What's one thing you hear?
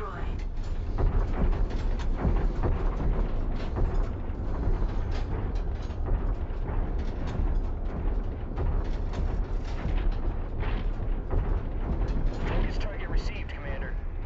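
Heavy metal footsteps thud in a steady rhythm.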